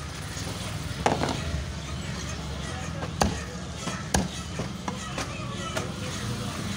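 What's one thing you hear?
A heavy cleaver chops down onto a wooden block with sharp thuds.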